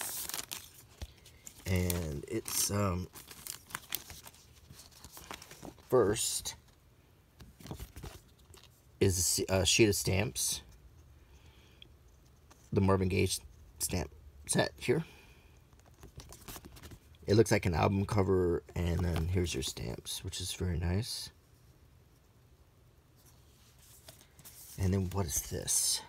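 Paper rustles as hands handle cards and stamp sheets.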